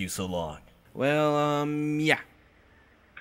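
A deeper-voiced older man speaks slowly.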